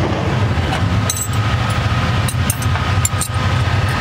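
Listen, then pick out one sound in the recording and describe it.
Metal wrenches clink together.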